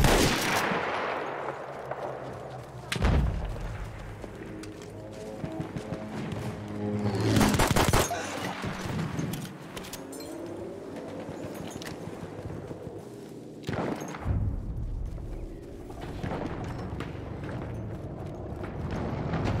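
Footsteps run over ground and grass.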